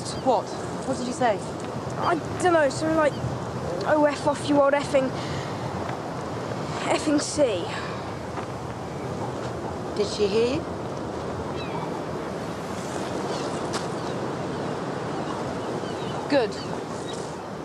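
A middle-aged woman speaks in a sad, choked voice nearby.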